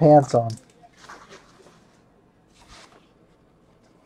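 Trading cards rustle softly as hands sort through them.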